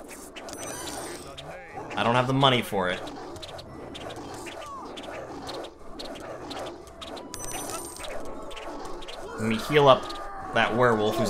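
Swords clash and clink in a skirmish.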